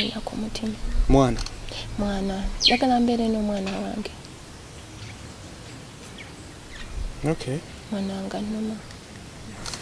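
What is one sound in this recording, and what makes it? A young woman speaks earnestly, close by.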